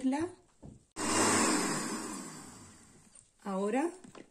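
A blender whirs loudly.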